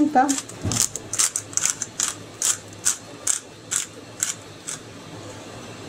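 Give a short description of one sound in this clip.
A pepper mill grinds with quick rattling clicks.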